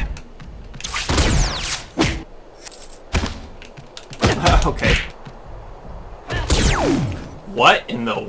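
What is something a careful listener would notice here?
Quick swooshes sweep past during a fight.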